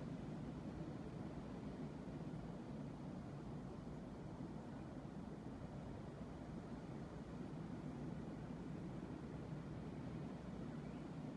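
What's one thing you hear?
Ocean waves crash and roll steadily onto the shore.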